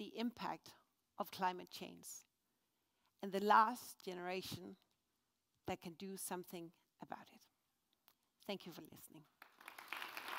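A woman speaks calmly through a microphone in a large hall.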